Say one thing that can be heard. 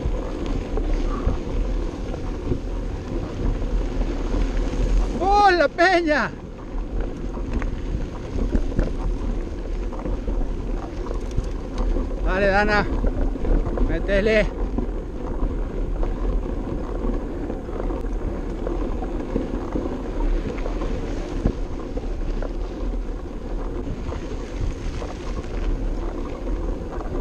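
Bicycle tyres crunch and rattle over a gravel road.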